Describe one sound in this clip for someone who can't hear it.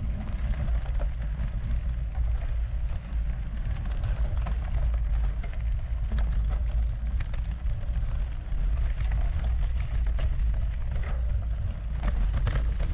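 Wind rumbles steadily across the microphone outdoors.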